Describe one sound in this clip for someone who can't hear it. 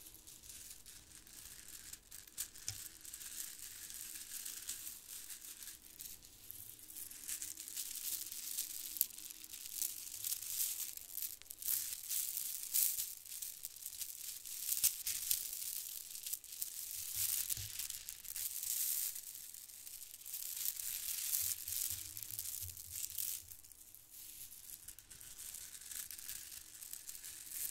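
Plastic bead strands clink and rattle softly close to a microphone.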